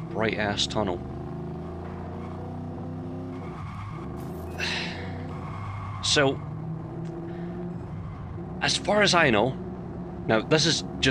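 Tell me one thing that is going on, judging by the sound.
Car tyres squeal sharply in bursts.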